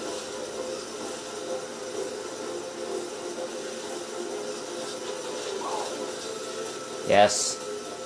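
A toy kart engine hums steadily.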